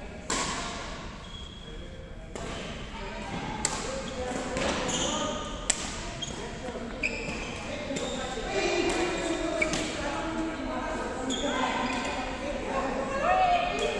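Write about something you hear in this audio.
Many voices chatter in a large echoing hall.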